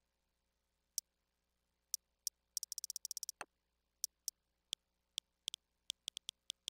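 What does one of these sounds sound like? Short, sharp menu clicks tick quickly one after another.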